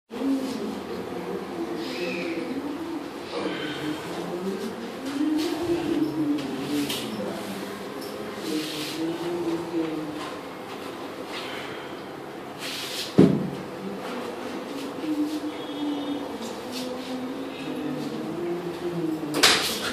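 A man chants slowly in a low voice nearby.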